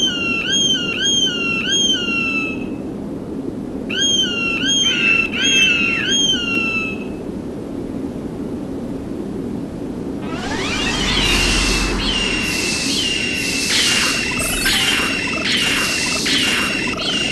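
An eagle cries out in short, shrill screeches.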